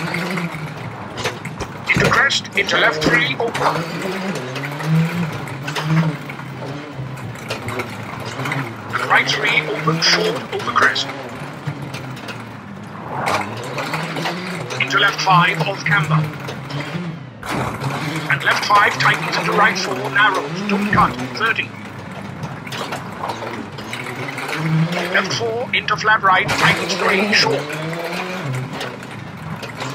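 A rally car engine revs hard and shifts gears.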